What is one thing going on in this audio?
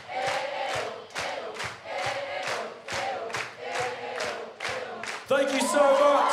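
A crowd claps in time to a steady beat.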